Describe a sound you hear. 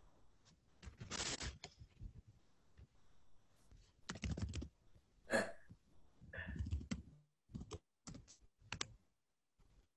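A young woman speaks quietly and haltingly over an online call.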